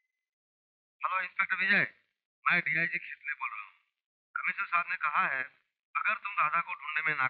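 A young man speaks calmly into a telephone.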